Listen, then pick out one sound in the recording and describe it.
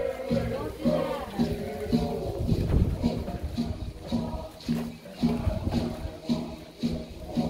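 A live band plays music outdoors with a steady drum beat.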